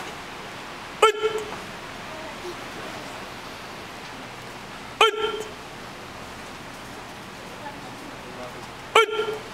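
A group of men shout sharply in unison, echoing in a large hall.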